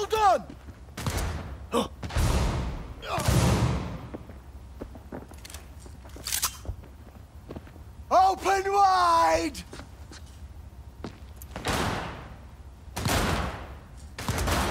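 A pistol fires loud shots, each one echoing and fading.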